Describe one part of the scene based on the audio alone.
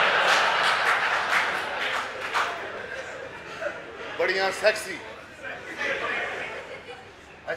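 A man speaks loudly and with animation through a stage sound system.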